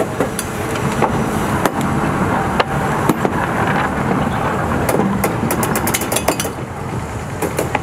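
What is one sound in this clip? A locomotive rumbles loudly past close by.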